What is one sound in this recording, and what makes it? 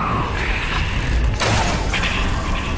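An arrow whooshes from a bow.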